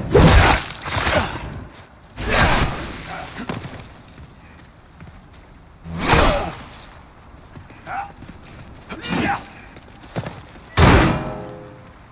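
Magic crackles and bursts in loud whooshing blasts.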